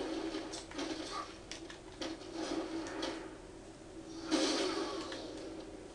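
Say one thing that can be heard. Heavy blows thud and smack in a brawl.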